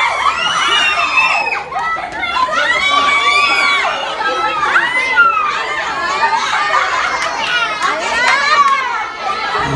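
Young children shout and chatter excitedly nearby.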